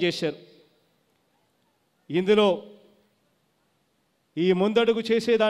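A man speaks into a microphone over loudspeakers, pausing between phrases.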